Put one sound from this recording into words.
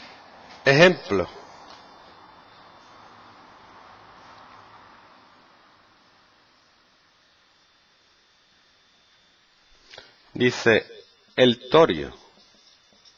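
A man speaks in short bursts, as if explaining.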